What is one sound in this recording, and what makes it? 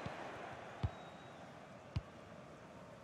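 A football is kicked with a thump.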